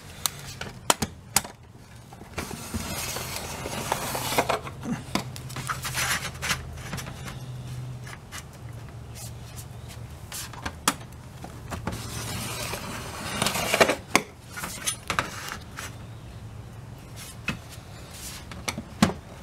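A gloved hand rubs and slides along a metal rail, with light knocks.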